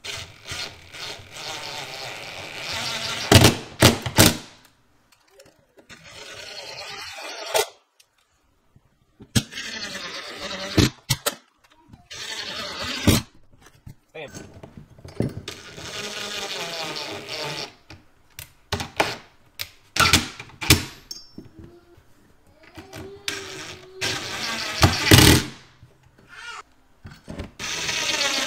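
A cordless drill whirs in short bursts, driving screws into a wall.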